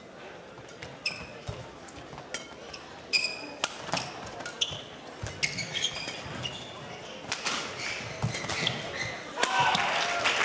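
A shuttlecock is struck sharply back and forth with rackets.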